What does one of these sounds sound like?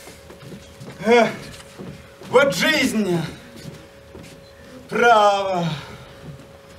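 A young woman exclaims theatrically, with animation.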